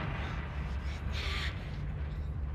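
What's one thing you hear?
A young girl screams in pain.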